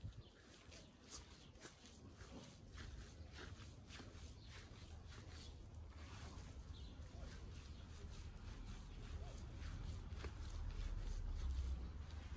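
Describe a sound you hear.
Hands squish and slap wet minced meat.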